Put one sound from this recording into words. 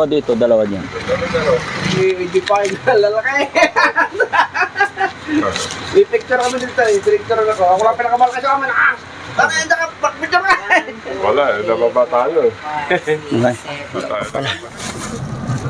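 Several adults talk with animation close by.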